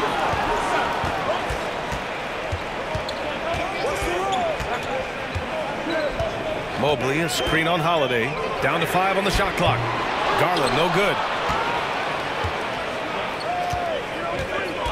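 A large crowd murmurs and cheers in an echoing arena.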